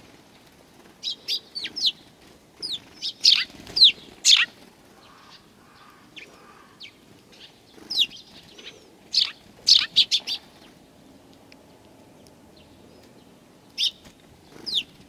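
A small bird chirps sharply close by, in short bursts.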